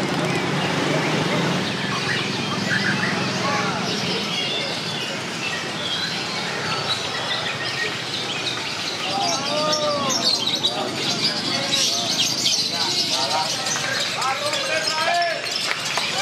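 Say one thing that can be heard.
Many caged birds chirp and sing outdoors.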